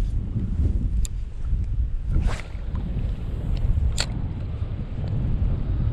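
A fishing rod swishes and a reel whirs as line is cast out.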